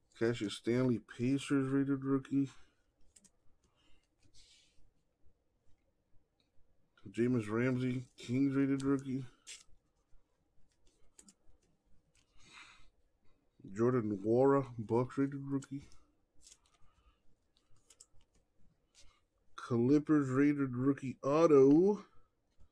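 Trading cards slide and rustle softly between fingers.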